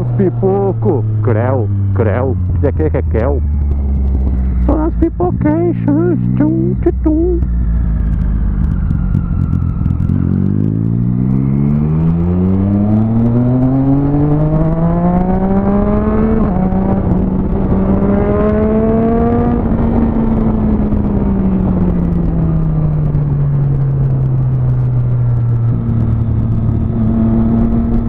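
A motorcycle engine revs up and down as the bike rides.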